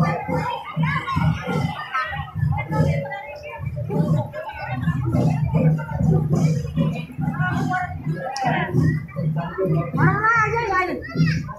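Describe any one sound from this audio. A crowd of men and women chatters loudly close by, outdoors.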